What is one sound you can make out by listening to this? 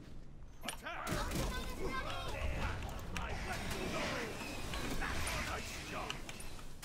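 Video game combat sounds clash and crackle.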